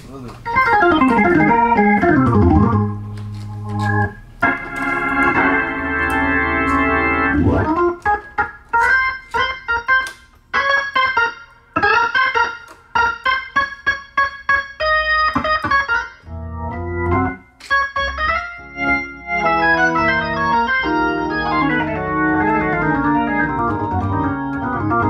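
An electric organ plays a lively tune with sweeping glides and sustained chords, then quick staccato chords.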